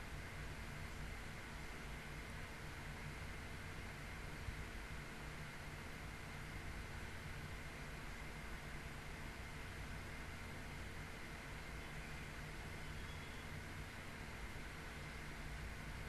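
A young woman whispers close into a microphone.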